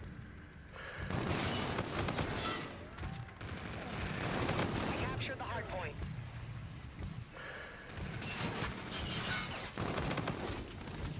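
Gunfire in a video game rattles in rapid bursts.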